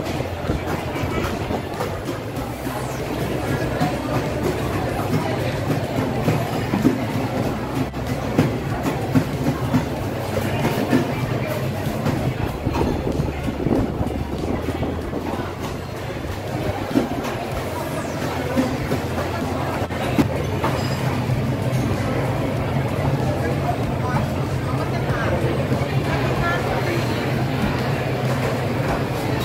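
A crowd of people chatters in a busy, echoing hall.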